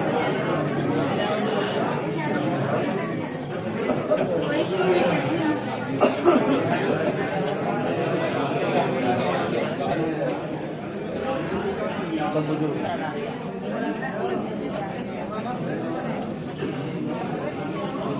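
A crowd of men and women murmur and chatter nearby.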